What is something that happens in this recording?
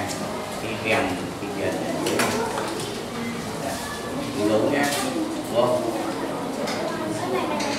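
A man talks quietly to children close by.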